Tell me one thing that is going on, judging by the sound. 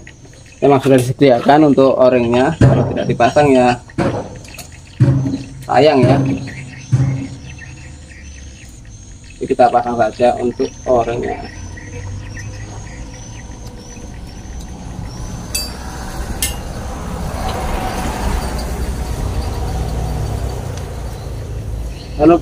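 A metal engine part clinks and knocks as it is handled.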